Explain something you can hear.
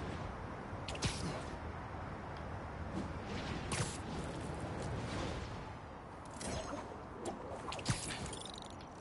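Web lines shoot out with sharp whooshing snaps.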